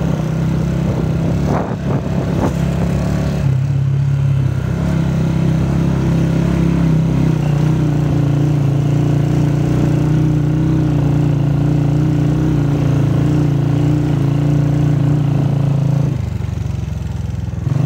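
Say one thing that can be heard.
A motorcycle engine hums steadily close by as it rides along.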